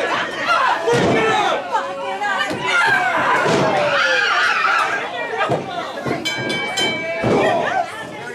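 Bodies thud heavily onto a wrestling ring's mat.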